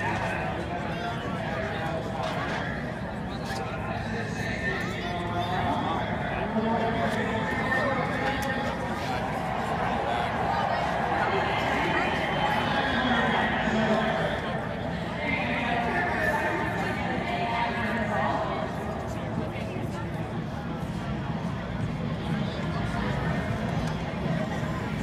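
A crowd of people talks and murmurs outdoors all around.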